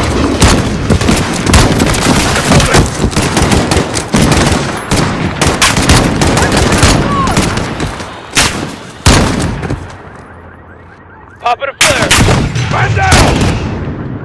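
A rifle fires single loud shots, one after another.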